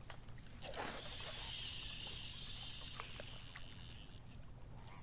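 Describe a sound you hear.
A fishing reel whirs as line spools out.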